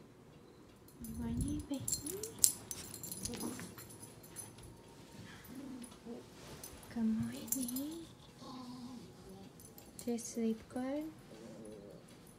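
A young child babbles and whimpers softly nearby.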